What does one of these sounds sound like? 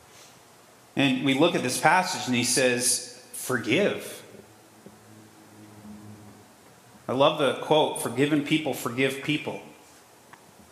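A man preaches with animation through a microphone in a reverberant hall, pausing between phrases.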